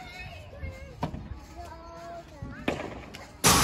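Rackets strike a ball with sharp pops.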